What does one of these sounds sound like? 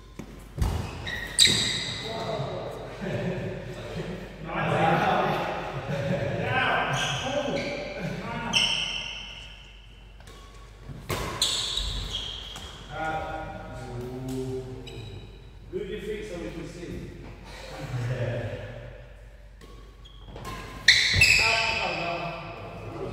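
Men talk and call out across the hall.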